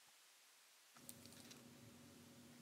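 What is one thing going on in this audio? Plastic card cases click and rustle softly in gloved hands.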